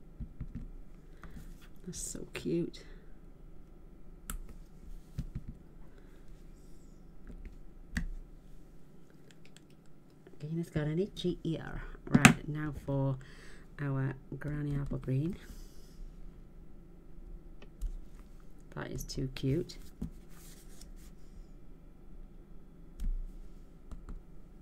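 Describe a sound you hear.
Small objects tap and knock on a table.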